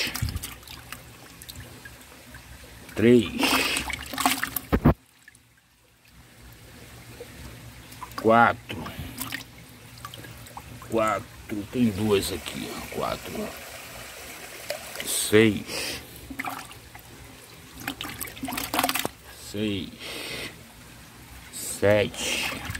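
Water sloshes and splashes as a hand stirs fish in a bucket.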